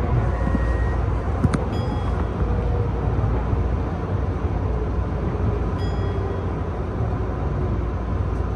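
A train's motor whines, its pitch slowly falling as it slows.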